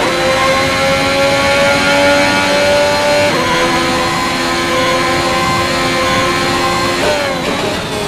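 A racing car engine screams steadily at high revs.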